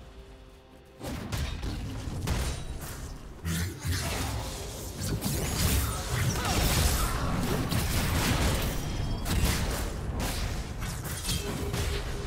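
Spell effects and weapon hits crackle and clash in a fierce fight.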